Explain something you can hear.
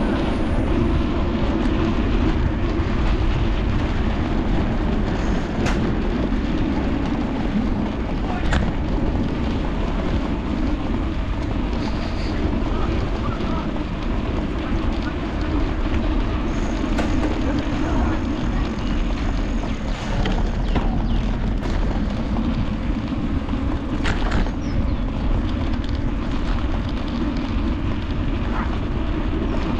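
Wind rumbles steadily against a microphone while riding outdoors.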